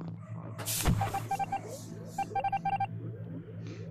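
Short electronic beeps chirp in quick bursts.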